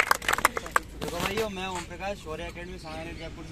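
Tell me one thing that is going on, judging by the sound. A young man speaks calmly outdoors, close by.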